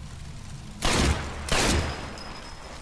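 Two loud pistol shots ring out close by.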